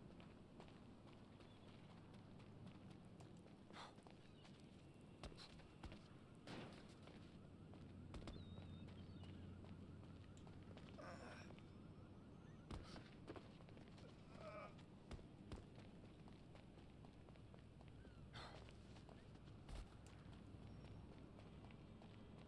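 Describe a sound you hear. Footsteps run across a gravel rooftop.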